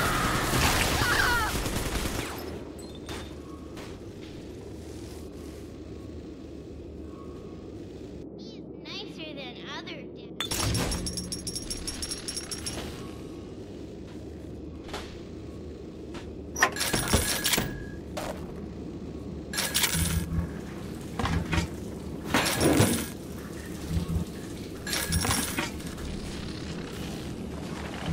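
Electricity crackles and buzzes in short bursts.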